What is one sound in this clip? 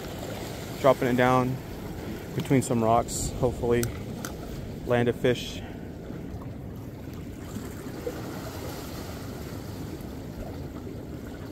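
Water laps gently against rocks.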